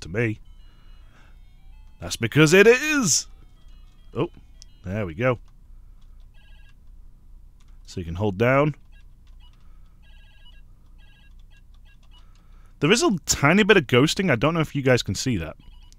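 A handheld game console plays short electronic beeps.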